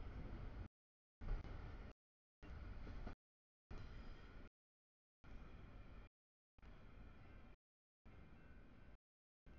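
A level crossing bell rings.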